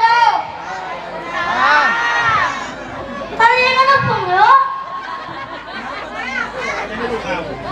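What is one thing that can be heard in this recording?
A young boy sings in a high voice.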